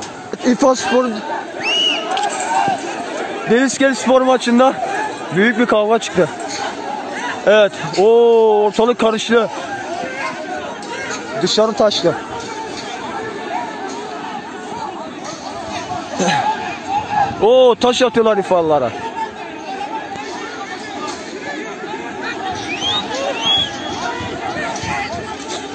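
A crowd clamours and murmurs outdoors.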